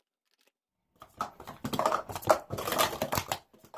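Plastic cups clatter quickly as they are stacked and unstacked.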